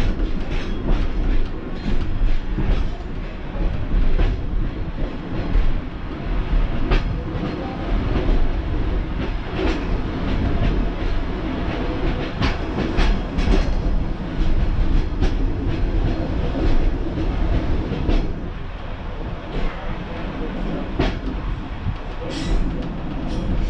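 The four-wheeled wheels of a Pacer railbus clatter over rail joints.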